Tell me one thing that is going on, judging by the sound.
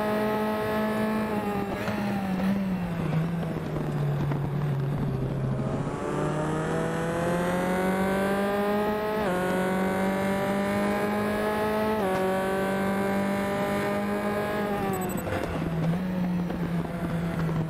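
A racing car engine revs high, rising through the gears and dropping as it shifts down.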